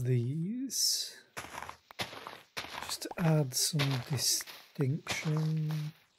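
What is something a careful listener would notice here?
Leaves rustle and crunch as they are broken.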